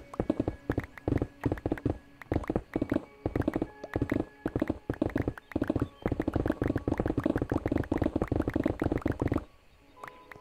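Stone blocks crack and crumble in quick succession under rapid digging.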